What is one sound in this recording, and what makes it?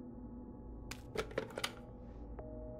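A telephone handset clatters as it is lifted.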